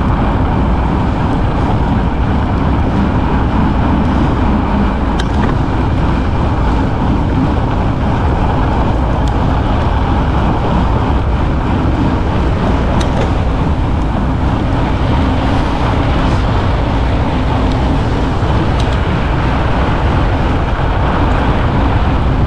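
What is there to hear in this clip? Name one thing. Fat bicycle tyres crunch and hiss over packed snow.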